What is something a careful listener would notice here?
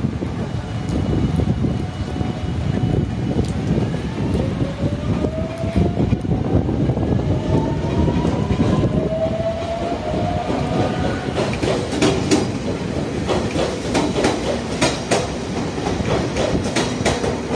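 A train rumbles along the tracks.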